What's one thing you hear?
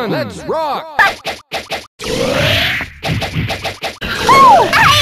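Punches and kicks land with sharp, quick hit sounds.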